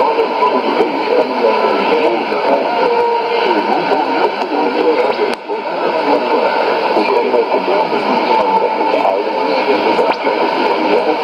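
A shortwave radio plays a distant, crackly broadcast through its small speaker.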